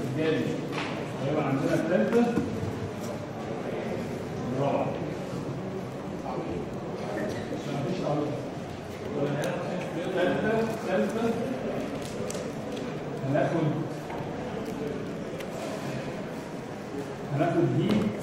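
A man lectures calmly in a room with a slight echo.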